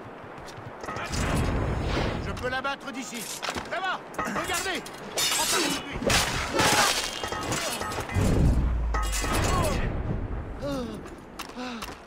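Blades clash and strike in a fight.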